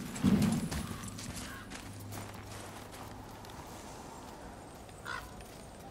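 Heavy footsteps crunch on snow.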